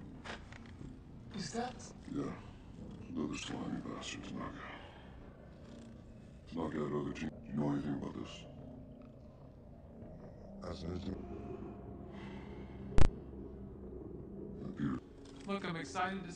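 Men talk tensely in low voices, close by.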